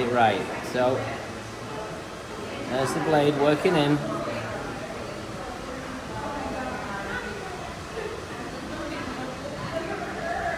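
Scissors snip through hair.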